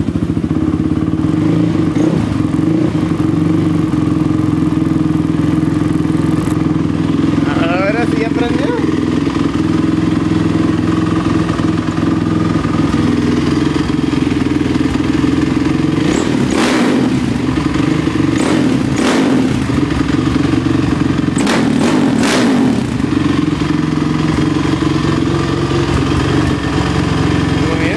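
A quad bike engine idles steadily close by.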